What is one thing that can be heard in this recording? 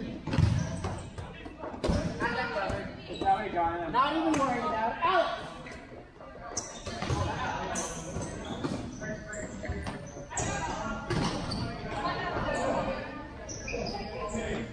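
Players' shoes squeak on a hard indoor court.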